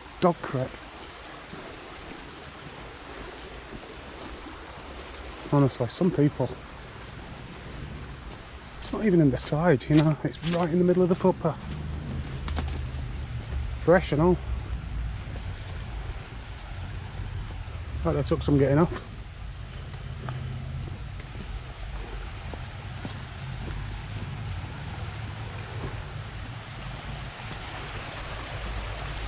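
Footsteps tread on a dirt path.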